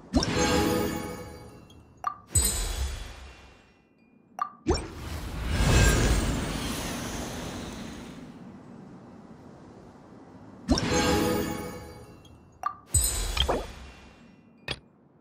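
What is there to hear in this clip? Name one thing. A bright magical chime rings out and slowly fades.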